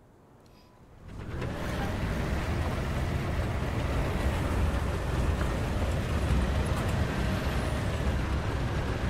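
A tank engine rumbles loudly and steadily.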